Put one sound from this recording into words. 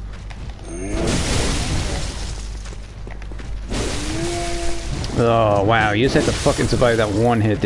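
A heavy blade slashes and strikes flesh.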